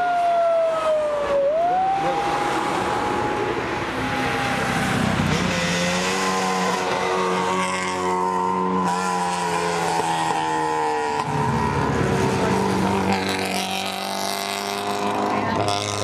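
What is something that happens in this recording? Tyres hiss on asphalt as cars pass close by.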